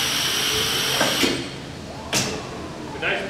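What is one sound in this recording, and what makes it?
A box thuds down as a vacuum lifter releases it.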